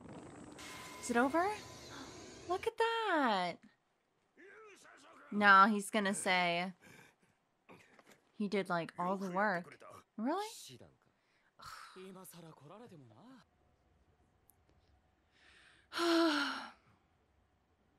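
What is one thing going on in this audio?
A young woman talks close to a microphone.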